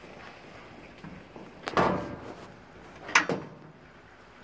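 Cloth rustles and brushes close by.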